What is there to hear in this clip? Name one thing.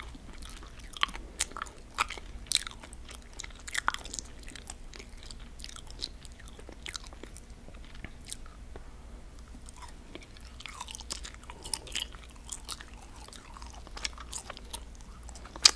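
A woman crunches a crisp snack close to a microphone.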